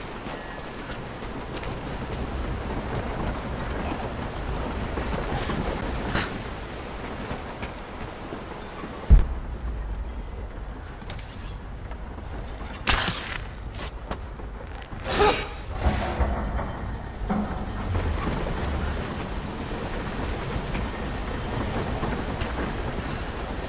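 Footsteps crunch on snow and thud on wooden boards.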